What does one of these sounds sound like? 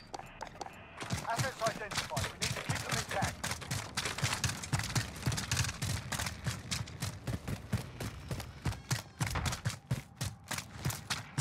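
Footsteps crunch quickly over gravel and dirt.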